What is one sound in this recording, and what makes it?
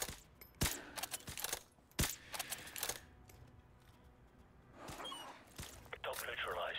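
Gunshots ring out loudly, one at a time, with a short echo after each.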